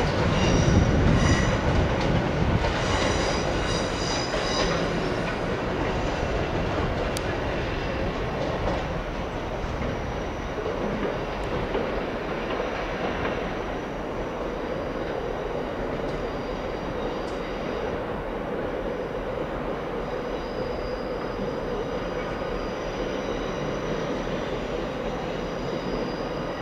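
An electric train hums and rumbles along the tracks, slowly moving away.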